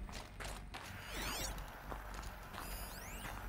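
A shimmering electronic sweep rises and falls.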